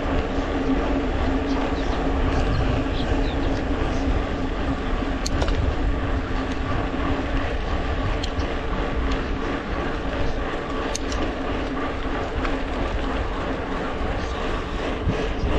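Wind rushes past steadily, as if outdoors while moving.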